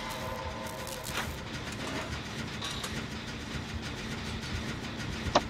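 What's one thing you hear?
A machine rattles and clanks as it is repaired.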